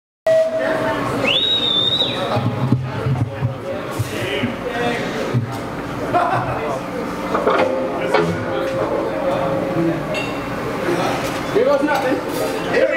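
A crowd of people chatter and call out nearby.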